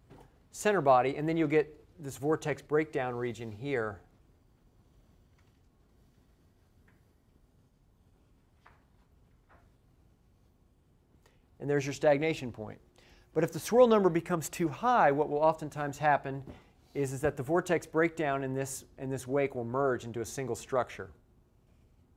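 A man lectures calmly through a clip-on microphone, in short bursts.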